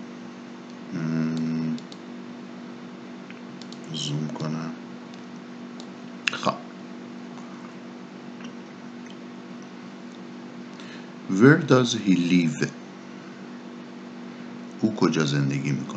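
A man speaks calmly into a microphone, in short phrases with pauses.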